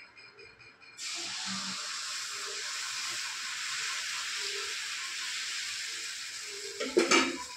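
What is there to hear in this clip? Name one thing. Batter sizzles steadily on a hot pan.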